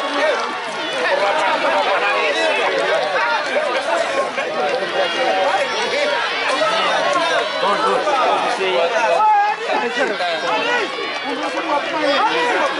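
A large crowd of people outdoors shouts and cheers loudly throughout.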